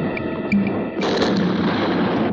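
A gun fires a single loud shot.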